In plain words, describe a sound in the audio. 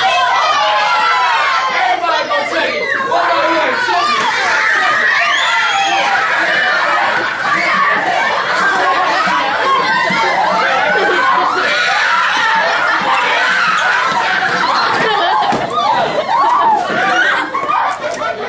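Children talk and shout excitedly in an echoing room.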